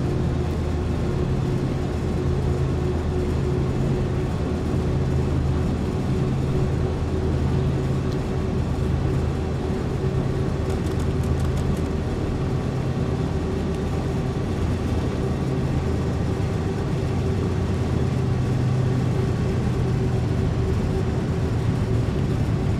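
Train wheels rumble and clack over the rails.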